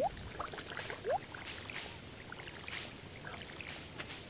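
Water splashes from a watering can onto soil.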